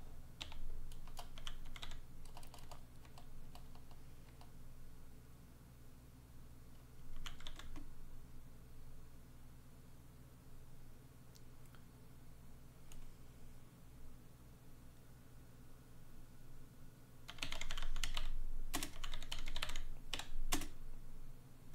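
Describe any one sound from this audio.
Keys clatter quickly on a keyboard in short bursts.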